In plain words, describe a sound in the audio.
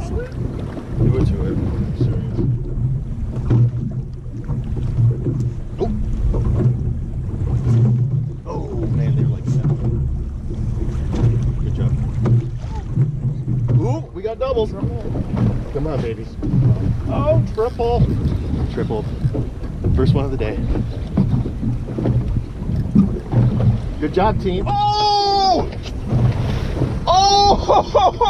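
Wind buffets the microphone outdoors on open water.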